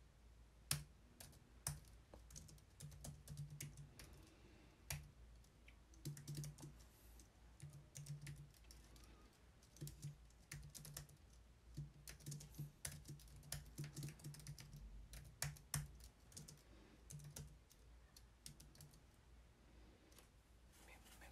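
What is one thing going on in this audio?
Keyboard keys click in quick, uneven bursts of typing.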